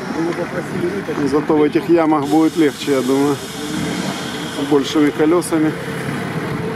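A crowd of spectators calls out and cheers outdoors.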